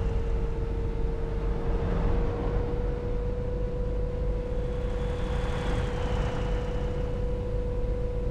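A bus engine hums steadily as it drives.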